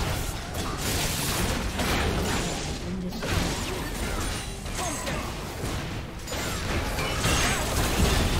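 Fantasy battle sound effects clash and crackle with bursts of magic.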